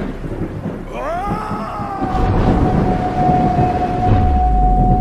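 A wolf howls, rising and then holding a long note.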